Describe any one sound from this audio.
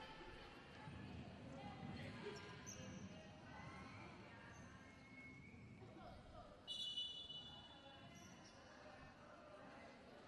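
A crowd murmurs and cheers in a large echoing indoor arena.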